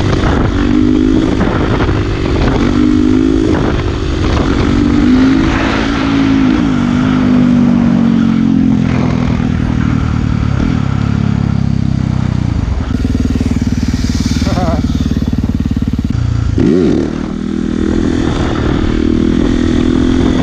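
A motorcycle engine revs loudly up and down close by.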